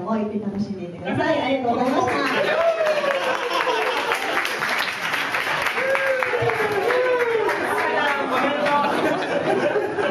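A crowd of young men and women cheer and shout loudly close by.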